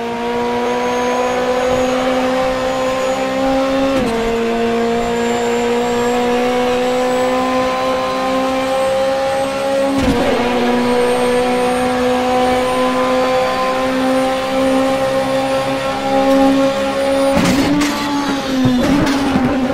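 A race car engine roars steadily, rising in pitch and dropping sharply at each gear change.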